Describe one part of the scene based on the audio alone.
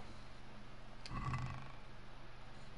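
A wooden chest lid creaks open.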